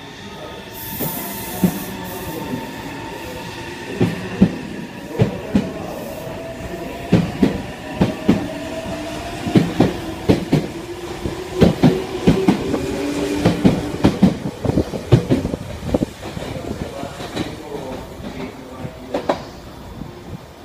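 Train wheels clack over rail joints, faster and faster.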